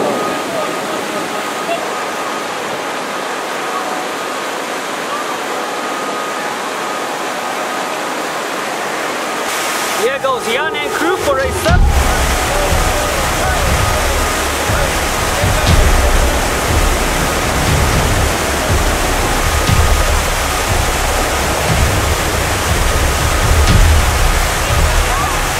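White water roars loudly through rapids.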